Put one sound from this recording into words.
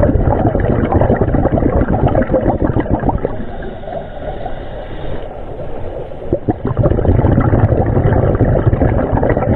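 Air bubbles from divers' breathing gear gurgle and rumble underwater in loud bursts.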